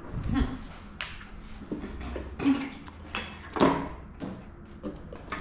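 Small metal tools clatter and clink on a tray.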